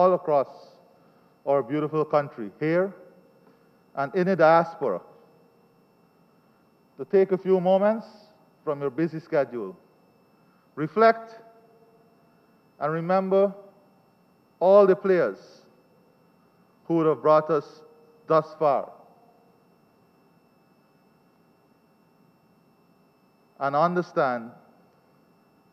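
A man speaks calmly into a microphone in short phrases, with pauses between them, in a room with a slight echo.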